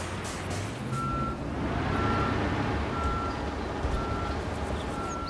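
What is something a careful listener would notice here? A reversing alarm beeps steadily.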